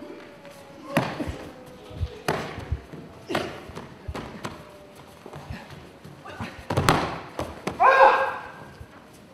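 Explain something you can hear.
A person lands on a mat with heavy thuds during throws.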